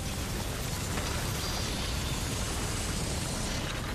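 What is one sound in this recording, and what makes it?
Footsteps run up stone stairs.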